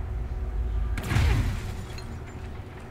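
Furniture smashes with a loud crash.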